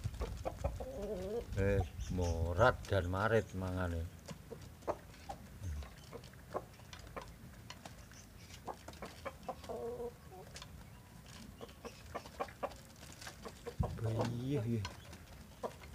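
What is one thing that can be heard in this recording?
Chickens call out with loud squawking clucks.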